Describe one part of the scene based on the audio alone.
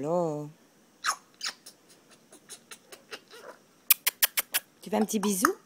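A parrot makes quick clicking and popping sounds.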